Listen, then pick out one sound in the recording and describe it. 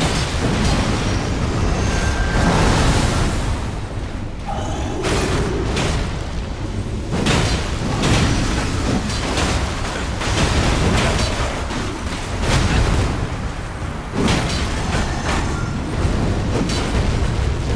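Heavy blows and clashing weapons sound in a game fight.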